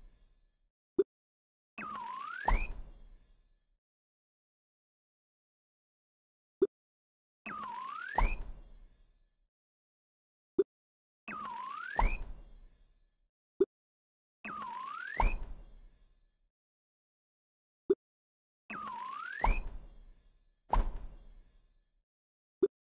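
A short soft pop sounds now and then.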